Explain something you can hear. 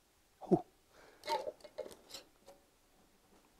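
A glass jar lid clinks and scrapes as it is handled.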